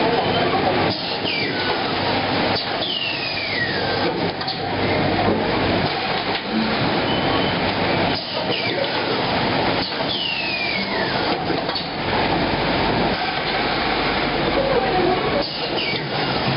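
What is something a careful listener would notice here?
Pneumatic parts of a packing machine hiss and clunk in repeated cycles.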